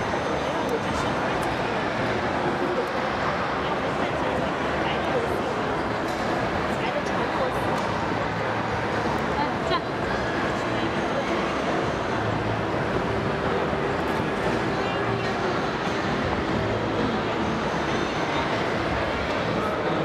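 A busy room hums with many people chattering in the background.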